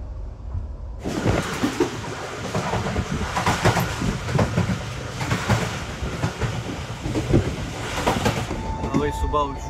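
Wind rushes loudly past an open train window.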